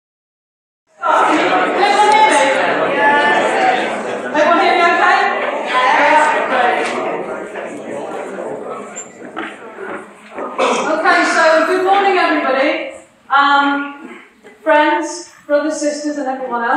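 A woman speaks into a microphone, heard in an echoing hall.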